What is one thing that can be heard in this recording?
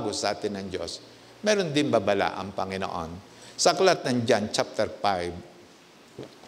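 An elderly man speaks calmly through a microphone in a large echoing room.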